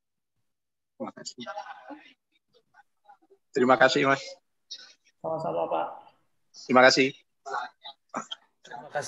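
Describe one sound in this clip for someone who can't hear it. A young man talks calmly over an online call.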